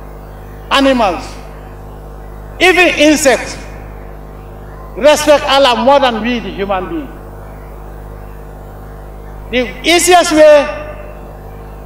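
A man speaks forcefully in short bursts through a microphone and loudspeakers outdoors.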